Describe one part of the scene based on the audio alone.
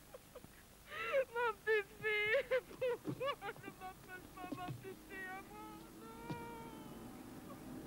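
A woman sobs and wails loudly.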